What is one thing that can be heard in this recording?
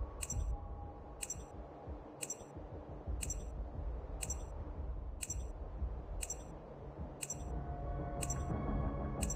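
A timer beeps once every second.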